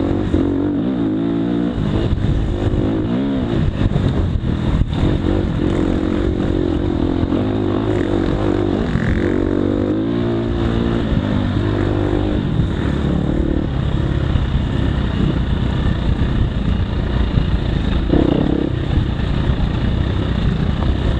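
Tyres crunch over a rough dirt trail.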